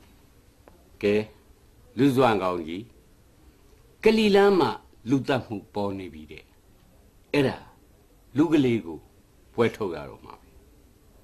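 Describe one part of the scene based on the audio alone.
A middle-aged man speaks with animation, up close.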